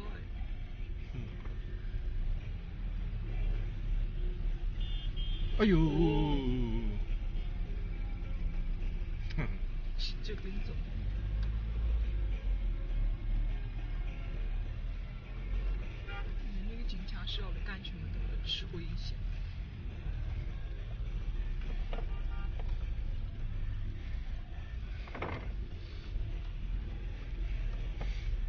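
A car's engine and tyres rumble low from inside the cabin.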